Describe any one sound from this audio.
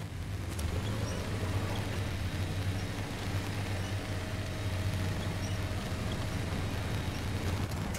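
A winch whirs as it pulls the truck.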